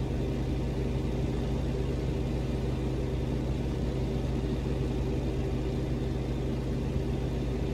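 A truck's diesel engine rumbles steadily while driving.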